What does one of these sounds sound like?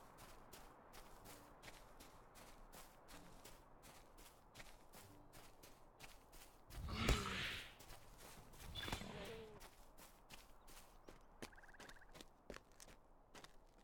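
Footsteps patter steadily on grass.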